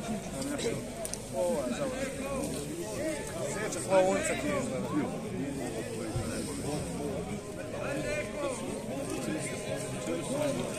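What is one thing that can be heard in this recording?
A crowd of men talks and calls out at a distance outdoors.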